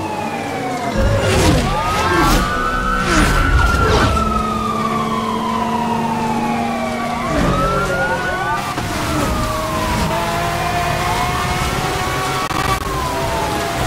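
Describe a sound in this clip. A car engine roars at high speed.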